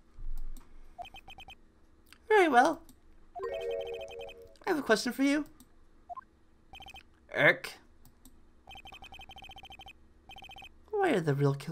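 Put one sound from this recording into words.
Quick electronic beeps tick in rapid runs.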